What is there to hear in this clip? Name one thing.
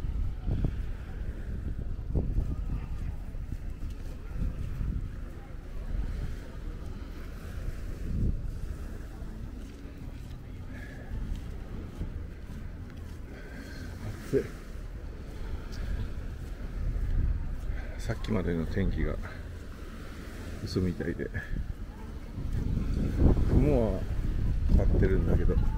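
Gentle waves wash onto the shore.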